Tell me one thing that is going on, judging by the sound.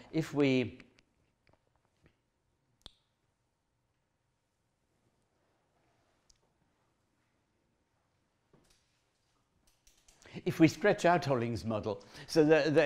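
A man speaks calmly to an audience, with a long pause between his words.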